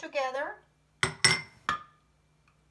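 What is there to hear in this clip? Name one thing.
A glass bowl knocks against a countertop.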